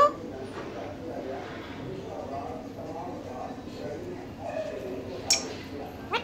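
A parrot chatters softly, close by.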